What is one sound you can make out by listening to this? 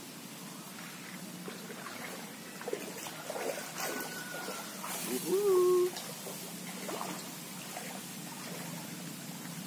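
A man wades through shallow water, splashing.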